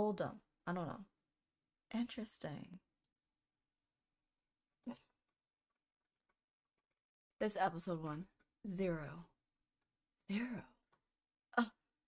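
A young woman speaks with animation into a close microphone, in short bursts with pauses.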